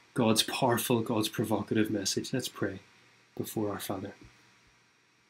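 A young man speaks calmly into a microphone, heard through an online call.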